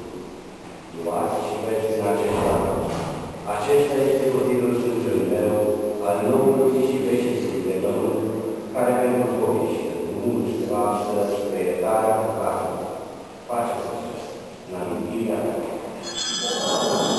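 A man chants a prayer slowly in an echoing hall.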